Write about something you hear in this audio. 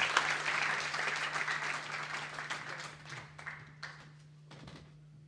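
Paper sheets rustle as pages are turned.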